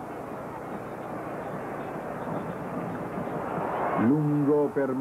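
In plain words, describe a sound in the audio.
A large crowd roars and swells in an open stadium.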